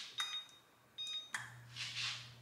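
An electronic stove panel beeps.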